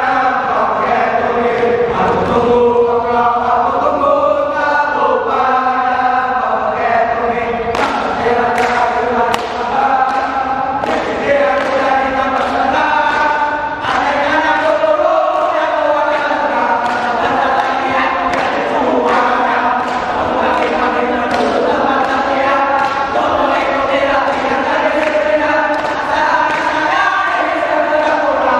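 A group of young men sing loudly together in unison.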